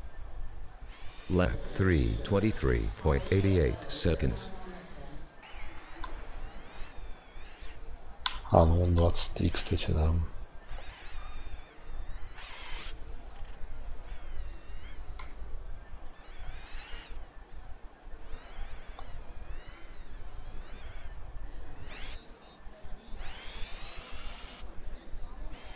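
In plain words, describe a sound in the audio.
A small electric motor whines, rising and falling in pitch.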